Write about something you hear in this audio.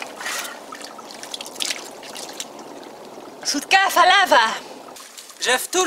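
Water trickles from a spout into a stone trough.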